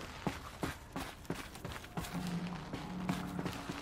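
Hands and feet scrape and knock on rock during a climb.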